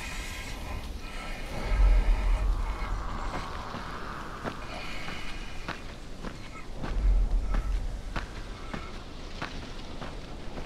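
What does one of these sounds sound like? Footsteps crunch through grass at a steady walking pace.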